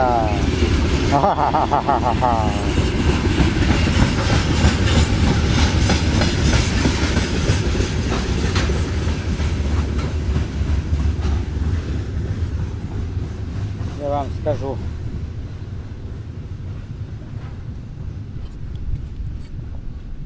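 A freight train rumbles past with clattering wheels, fading slowly.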